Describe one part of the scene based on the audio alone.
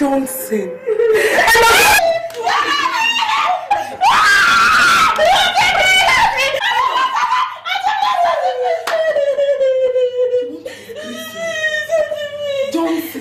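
A woman screams and wails loudly.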